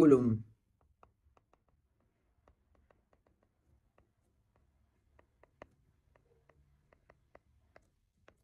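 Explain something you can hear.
A pen taps and scratches faintly on a tablet.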